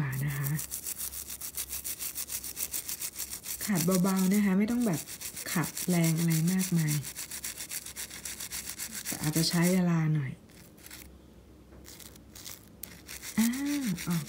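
A toothbrush scrubs rapidly against a small piece of metal.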